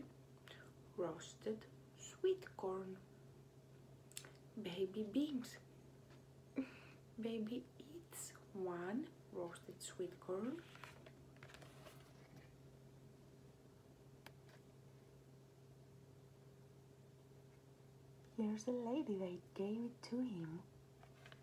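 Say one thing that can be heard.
A young woman reads aloud expressively, close to a microphone.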